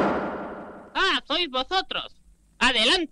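A man speaks in a comic, excited voice.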